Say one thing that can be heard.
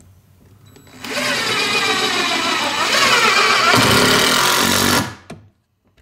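A power drill whirs loudly, driving a screw into wood.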